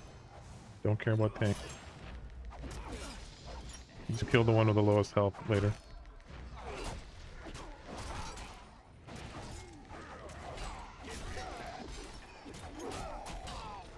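Swords clash and spells whoosh in a fantasy battle.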